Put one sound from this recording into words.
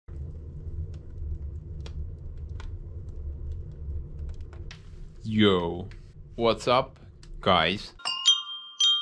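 A fire roars and crackles in a stove.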